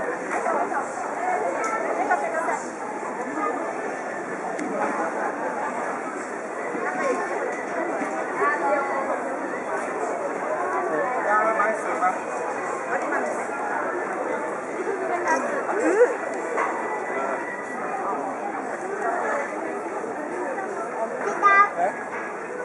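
Men and women chatter nearby in a busy crowd.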